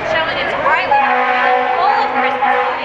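A fire engine horn blares.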